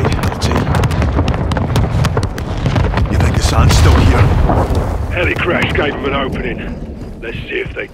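Explosions boom and rumble in the distance.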